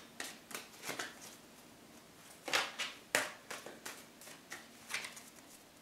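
Fingers tap and rustle playing cards on a wooden table, softly and close.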